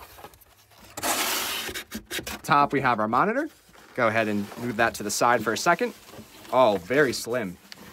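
A foam sheet rustles and crinkles as hands pull it.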